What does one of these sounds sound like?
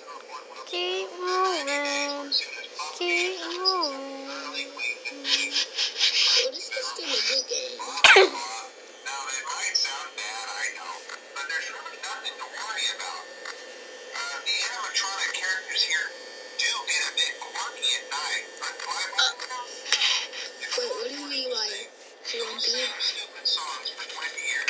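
A video game's music plays tinnily through a small phone speaker.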